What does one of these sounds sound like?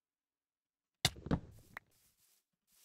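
A block breaks with a crunching thud.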